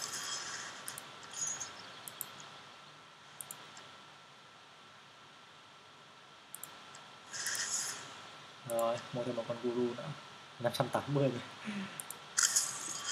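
Short soft menu clicks sound now and then.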